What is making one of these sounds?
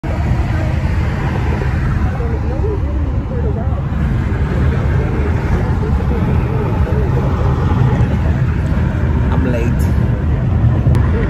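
A car's engine and tyres rumble steadily on a highway.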